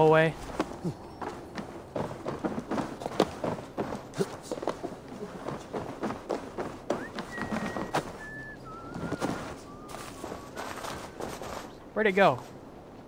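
Footsteps crunch and thud on a snowy wooden roof.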